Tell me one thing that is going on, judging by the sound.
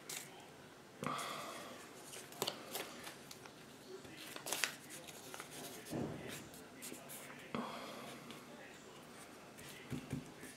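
Paper pieces rustle and crinkle as fingers press them down.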